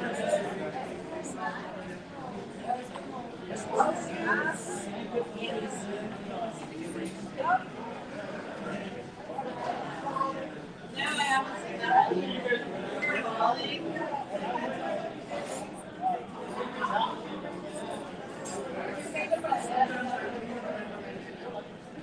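Diners chatter in the background of a busy room.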